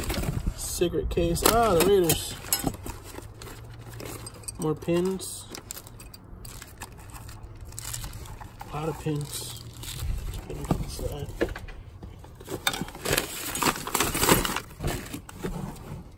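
Paper and cardboard rustle and crinkle.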